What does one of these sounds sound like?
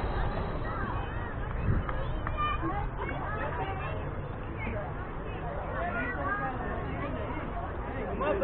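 Children chatter and call out across an open field.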